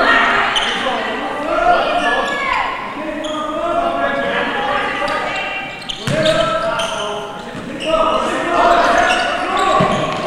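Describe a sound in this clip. A crowd of spectators shouts and cheers in an echoing indoor hall.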